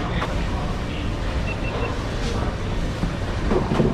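A cloth wipes across a wooden board.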